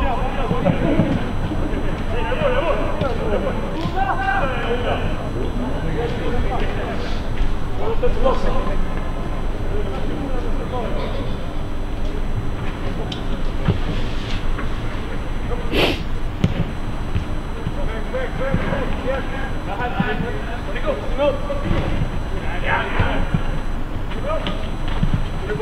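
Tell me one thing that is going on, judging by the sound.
Young men shout to each other from a distance, echoing around a large open stadium.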